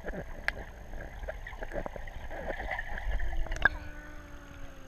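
Water gurgles and bubbles underwater as legs kick.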